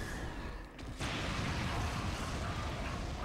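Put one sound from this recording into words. A video game explosion booms loudly.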